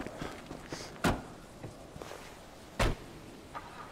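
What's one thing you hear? A car door slams shut.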